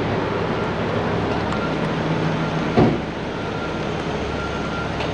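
A large truck engine idles nearby with a steady low rumble.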